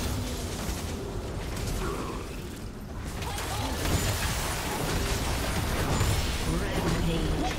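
Spell blasts and weapon hits clash in a busy video game battle.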